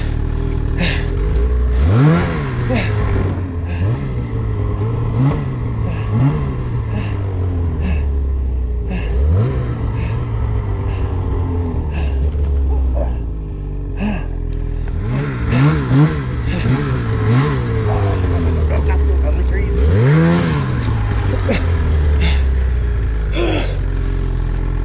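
A snowmobile engine roars and revs up and down.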